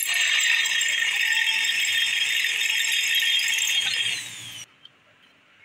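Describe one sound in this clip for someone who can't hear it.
A drill whines loudly as it bores into metal.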